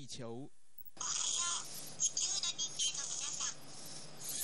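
A small robot speaks in a high, childlike voice.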